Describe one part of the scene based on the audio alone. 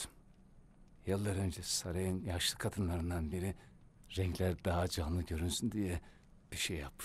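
An elderly man speaks weakly and hoarsely, close by.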